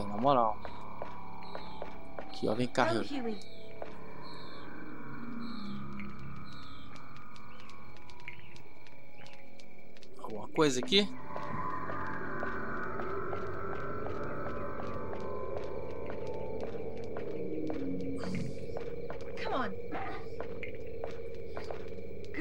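Footsteps tap steadily on a hard surface.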